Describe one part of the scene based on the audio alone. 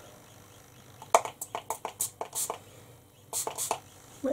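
A spray bottle hisses in short pumps.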